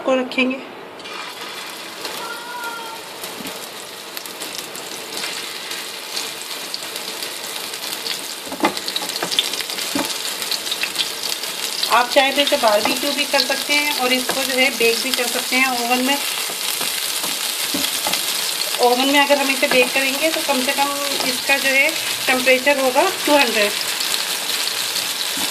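Meat sizzles and spits in hot oil in a frying pan, growing louder.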